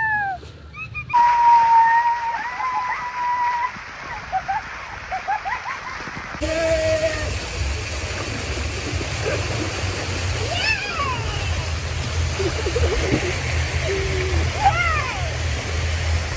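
Young women laugh and shriek.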